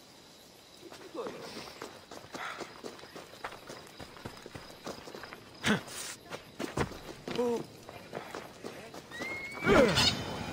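Footsteps run over the ground.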